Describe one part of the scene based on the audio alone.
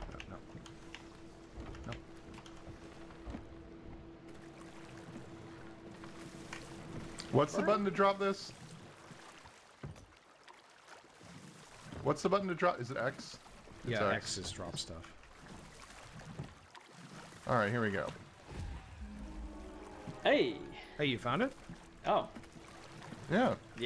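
Water splashes gently as a swimmer strokes through it.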